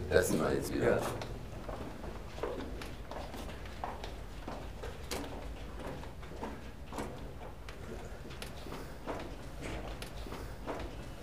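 Footsteps crunch on a gritty floor in an echoing tunnel.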